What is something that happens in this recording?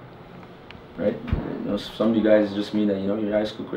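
A man speaks firmly and loudly nearby in an echoing room.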